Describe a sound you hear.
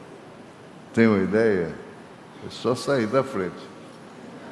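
An elderly man speaks into a microphone over loudspeakers in a large echoing hall.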